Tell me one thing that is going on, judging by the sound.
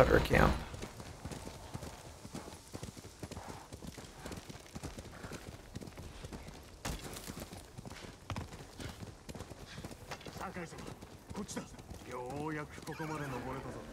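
Horse hooves thud on snowy ground at a gallop.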